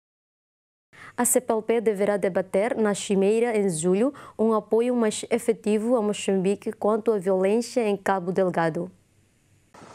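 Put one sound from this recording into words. A young woman speaks clearly and calmly into a microphone.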